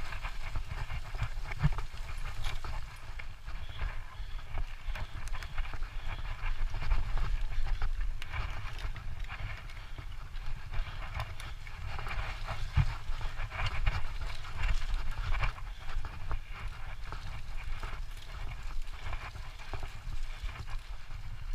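A bicycle frame rattles and clicks over bumps.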